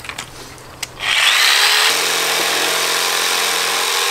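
An electric jigsaw whirs loudly as it cuts.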